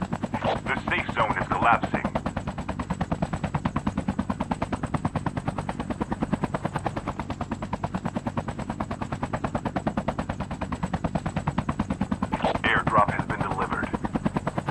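Helicopter rotor blades thump rapidly and steadily close by.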